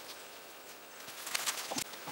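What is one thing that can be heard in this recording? Footsteps rustle through brush a short way off.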